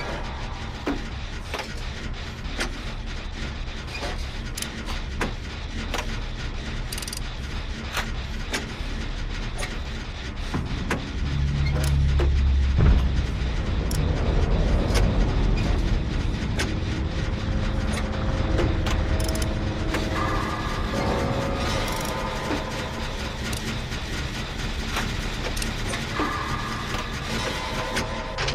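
Metal parts clatter and click as a machine is repaired by hand.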